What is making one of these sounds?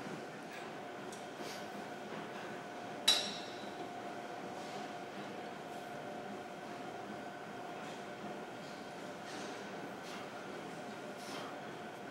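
A man exhales sharply with each effort, close by.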